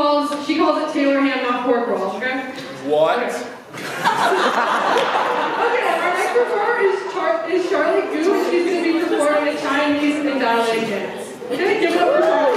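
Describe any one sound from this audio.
A young woman sings into a microphone, heard through loudspeakers.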